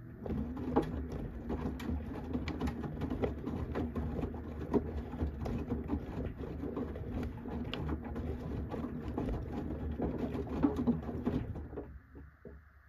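Wet laundry tumbles and sloshes in a washing machine drum.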